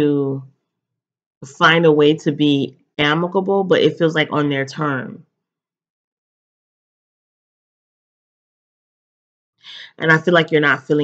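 A young woman talks calmly and close to the microphone, with pauses.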